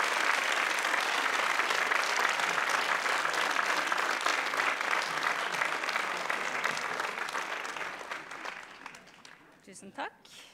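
An audience applauds loudly in a large hall, then the applause fades.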